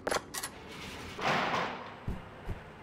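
A heavy door swings open with a creak.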